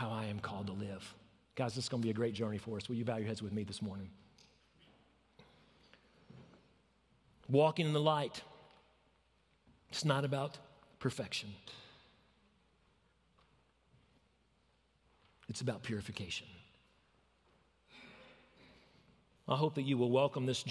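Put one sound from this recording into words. A man speaks calmly through a microphone in a large room, with pauses between phrases.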